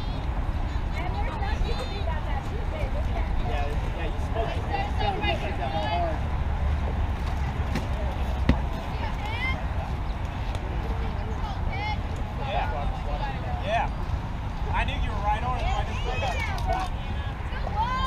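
Young women call out and cheer from across a field.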